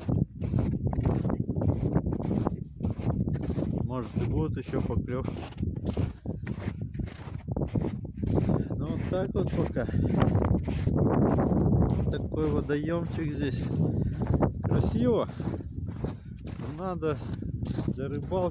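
A man talks calmly and close up.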